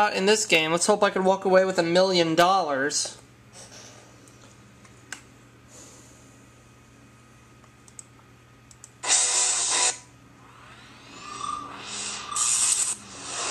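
Music plays through small laptop speakers.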